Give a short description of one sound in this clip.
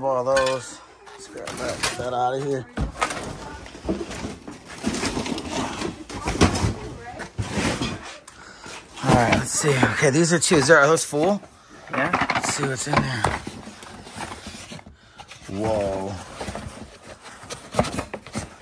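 Cardboard boxes rustle and scrape as they are handled.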